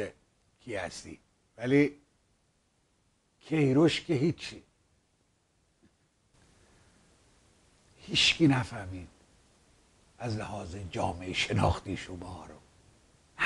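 A middle-aged man speaks calmly into a close microphone, in short phrases with pauses.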